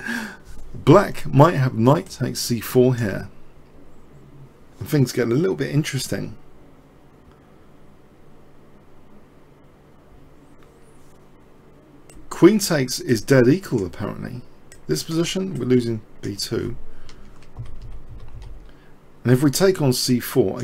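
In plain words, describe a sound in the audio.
A man talks calmly and clearly into a microphone, in short bursts with pauses.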